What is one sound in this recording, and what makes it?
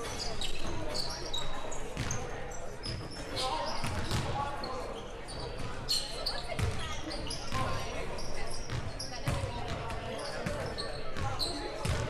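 Sneakers squeak sharply on a wooden court, echoing in a large gym.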